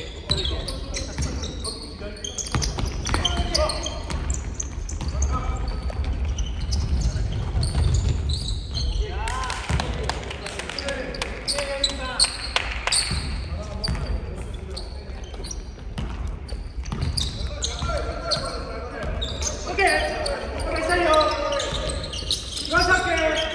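Young men shout to each other across the echoing gym.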